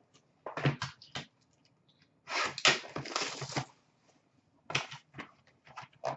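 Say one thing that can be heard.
Hands rummage through plastic card cases, clattering softly.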